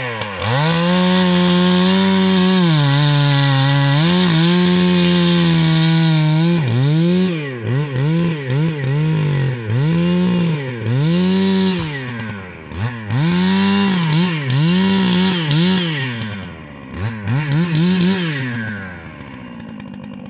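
A chainsaw engine runs loud and close, then revs up and down over and over as it cuts into wood.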